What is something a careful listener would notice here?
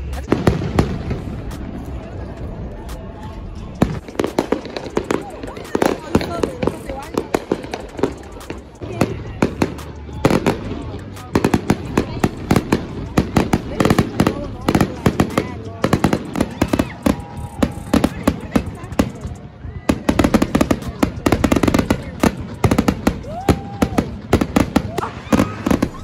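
Fireworks burst with loud booms and crackles outdoors.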